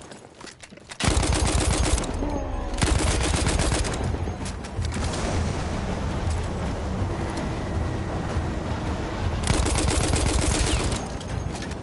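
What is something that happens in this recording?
Rifle shots fire in rapid, loud bursts.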